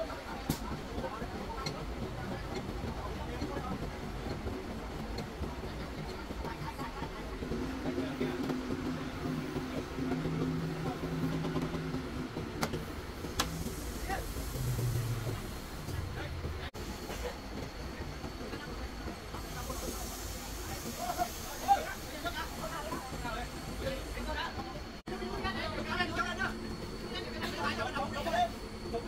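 A crane engine hums steadily outdoors.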